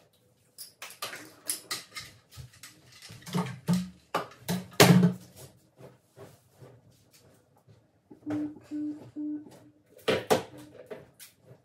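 Plastic bottles clatter as they are picked up and set down.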